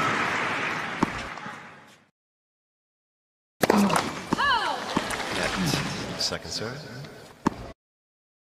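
A tennis ball is struck hard with a racket, with sharp pops.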